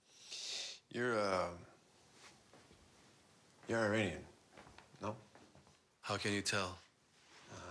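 A man speaks in short, emotional bursts nearby.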